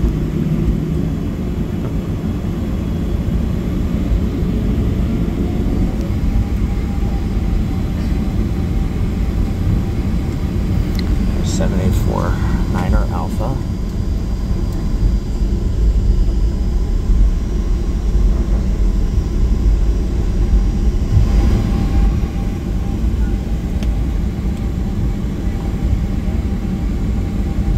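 A jet engine hums low and steady as an airliner taxis, heard from inside the cabin.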